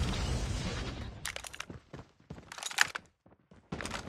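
A sniper rifle fires sharp, loud shots.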